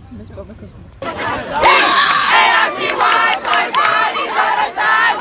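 Young women scream and cheer loudly up close.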